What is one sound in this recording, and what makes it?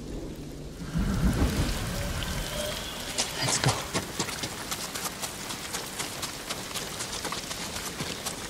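Footsteps run on a dirt path.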